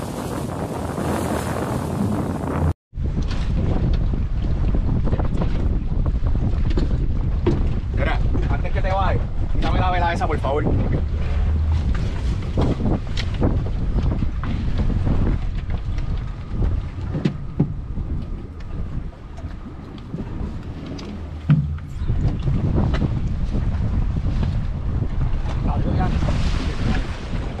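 Waves slosh and splash against a boat's hull.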